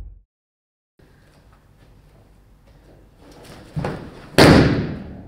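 Bare feet shuffle softly on a mat.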